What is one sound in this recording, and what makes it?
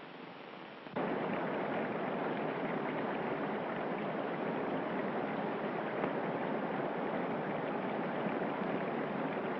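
Canoe paddles splash through water.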